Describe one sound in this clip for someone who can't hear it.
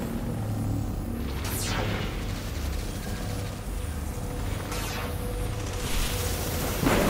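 A hover bike's engine hums low and steady.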